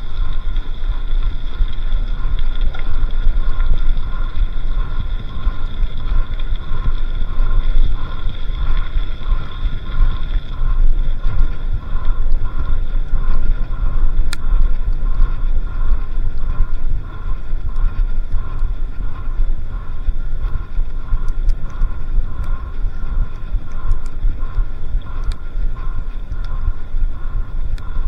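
Wind buffets past steadily, outdoors.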